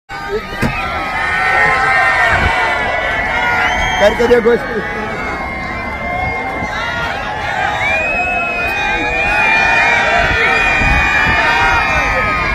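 A large crowd of children shouts and cheers outdoors.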